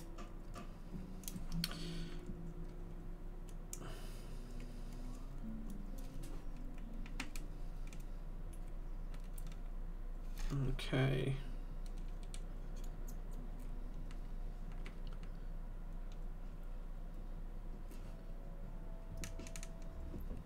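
Small plastic parts click and tap as tweezers work on a keyboard.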